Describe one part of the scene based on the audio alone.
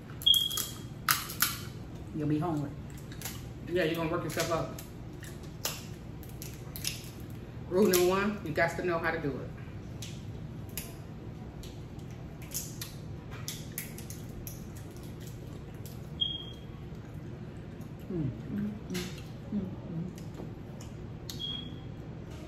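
Crab shells crack and snap in hands.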